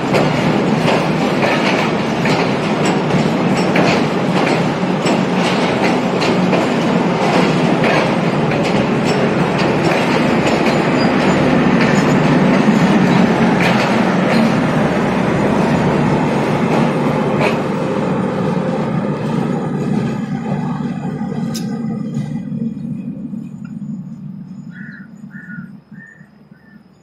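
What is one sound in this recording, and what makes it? A passenger train rumbles past close by and fades into the distance.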